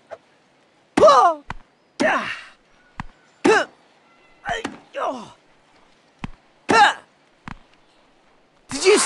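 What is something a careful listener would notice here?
A tennis ball is hit back and forth with sharp thwacks.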